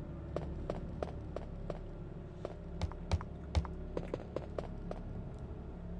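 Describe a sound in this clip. Footsteps thud on wooden stairs at a steady pace.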